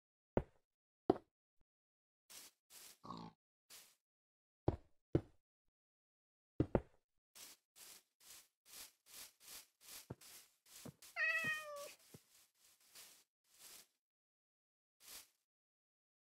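Footsteps tap on hard stone.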